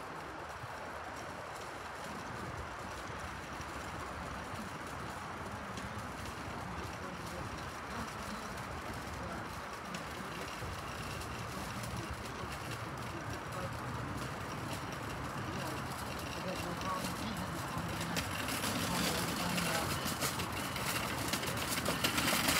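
Cart wheels rattle on pavement.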